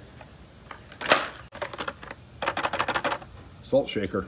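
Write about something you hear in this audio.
A plastic toy package crinkles as a hand handles it.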